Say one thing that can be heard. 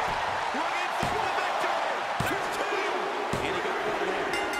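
A referee's hand slaps the mat for a count.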